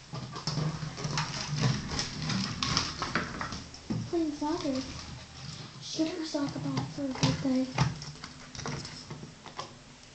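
A plastic bottle crinkles and rattles on a wooden floor.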